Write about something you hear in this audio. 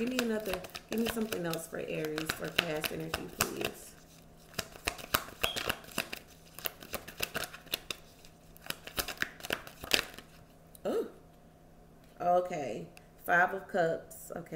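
Playing cards shuffle with quick, crisp flicks close by.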